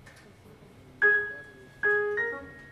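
A piano plays a few loud chords.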